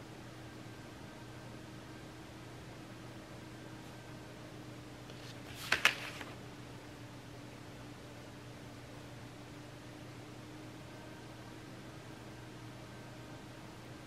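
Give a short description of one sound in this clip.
A brush lightly scratches and swishes over paper.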